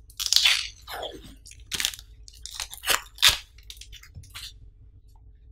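Plastic wrapping crinkles and rustles as hands peel it off.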